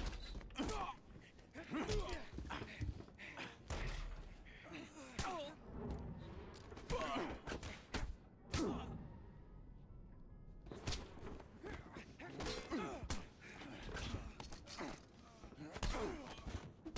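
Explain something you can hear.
Heavy blows and scuffles thud in short bursts.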